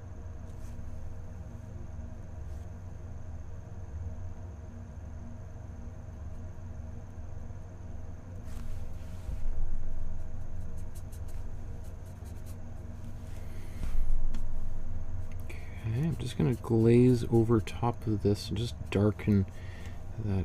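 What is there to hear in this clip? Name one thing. A paintbrush softly brushes across a canvas.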